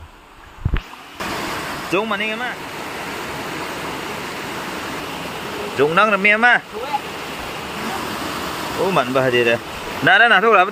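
Water rushes steadily over rocks.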